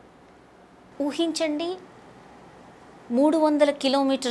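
A woman speaks clearly into a microphone, close by.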